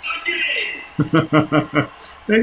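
A man laughs heartily.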